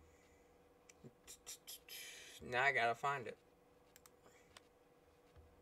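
Soft interface clicks tick as menu options change.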